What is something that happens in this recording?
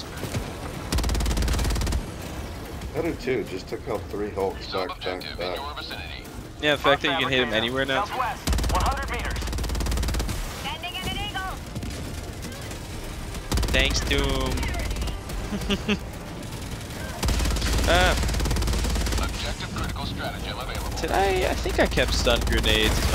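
Heavy guns fire in deep, rumbling bursts.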